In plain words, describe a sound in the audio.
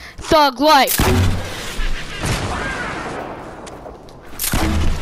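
Explosions boom loudly, followed by rumbling debris.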